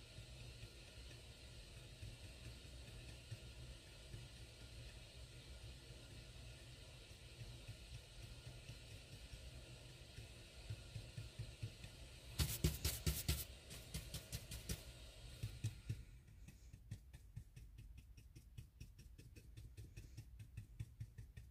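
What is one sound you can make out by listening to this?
A paintbrush dabs and strokes softly.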